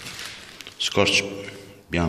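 A plastic bag rustles and crinkles up close.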